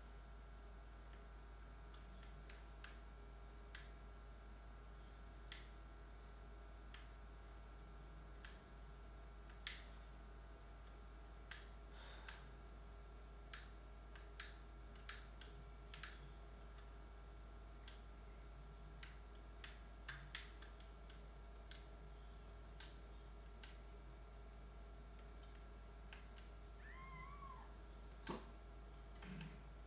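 Short clicks and taps from a video game sound faintly from a television.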